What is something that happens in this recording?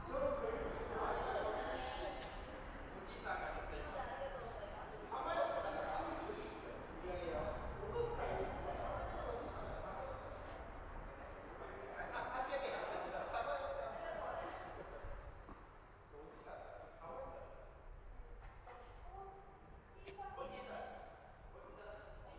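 Tennis balls are struck by rackets with sharp pops, echoing in a large hall.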